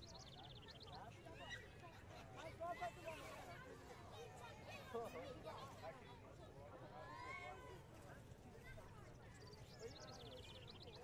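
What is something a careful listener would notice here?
A crowd of adults chatters and calls out outdoors.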